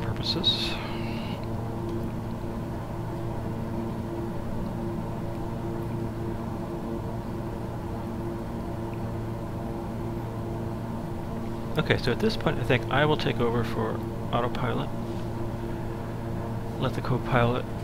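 A steady aircraft engine drones inside the cockpit.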